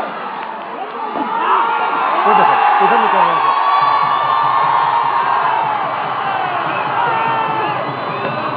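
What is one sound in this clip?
A large crowd cheers and chants outdoors at a distance.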